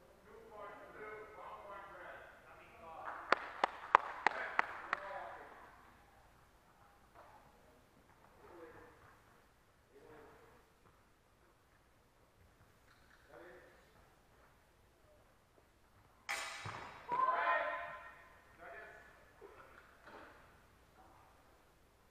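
A woman calls out commands in a large echoing hall.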